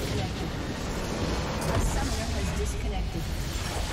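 A large structure explodes with a deep rumble in a video game.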